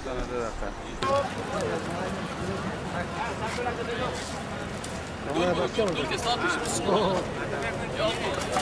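Several men talk nearby outdoors.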